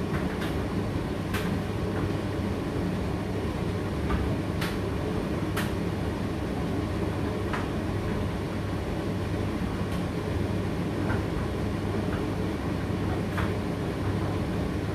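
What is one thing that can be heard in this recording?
A condenser tumble dryer runs with a steady low hum.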